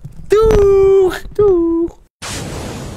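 A young man calls out loudly in a drawn-out voice close by.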